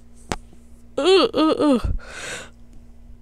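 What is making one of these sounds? A girl shouts with excitement.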